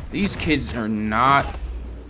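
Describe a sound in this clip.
A web line shoots out with a sharp zip.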